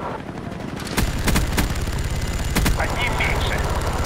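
A heavy machine gun fires rapid bursts.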